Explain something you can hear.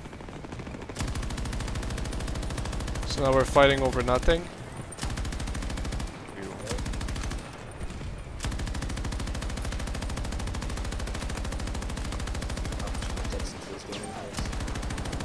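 A machine gun fires rapid, continuous bursts up close.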